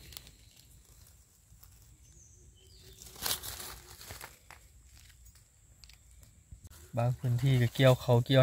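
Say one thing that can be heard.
Dry leaves rustle as hands move through them.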